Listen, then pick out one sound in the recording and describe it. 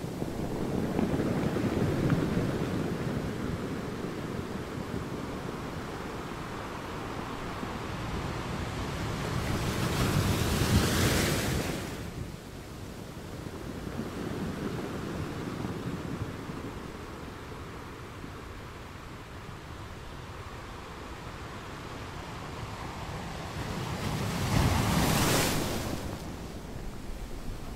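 Ocean waves roar steadily and crash against rocks outdoors.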